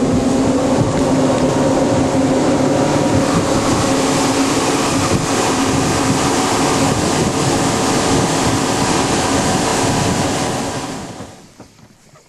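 Water rushes and splashes past a boat.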